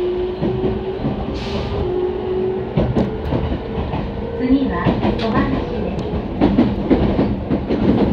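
An electric commuter train's motors whine as it pulls away, heard from inside.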